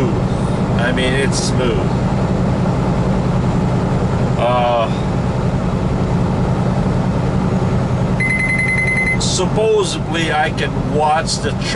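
A man talks nearby with animation.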